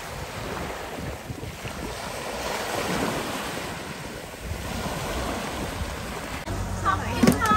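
Waves slosh and churn on open water in the wind.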